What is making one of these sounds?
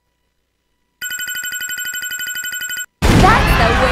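Rapid electronic beeps tick quickly as a score counts up.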